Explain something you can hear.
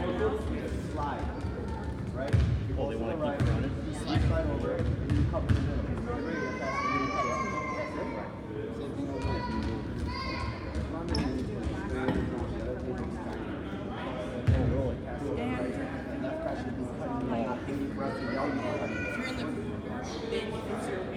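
Young boys talk with one another close by in a large echoing hall.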